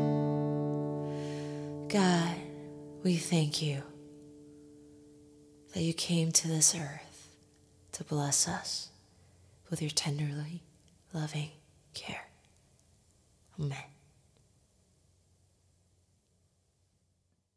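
An acoustic guitar rings out with strummed chords.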